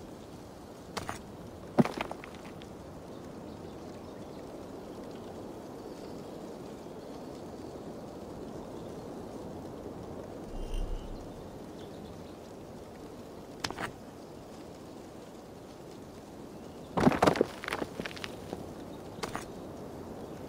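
Stones knock and clack against each other.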